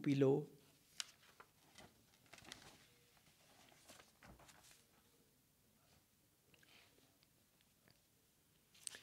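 Paper sheets rustle as they are handled.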